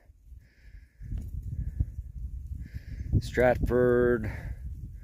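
A dog rustles through dry leaves.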